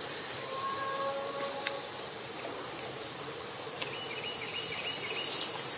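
Wild hogs snuffle and grunt as they root in the grass some distance away.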